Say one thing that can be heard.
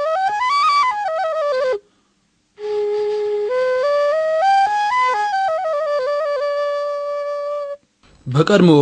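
A voice chants a slow, drawn-out melody.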